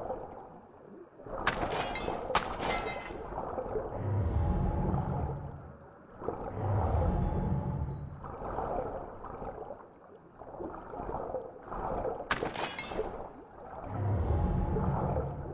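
Water swooshes in slow surges as a diver swims underwater.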